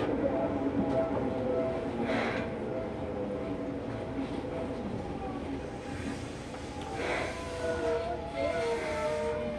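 A train rumbles and clatters steadily as it rolls out of a station.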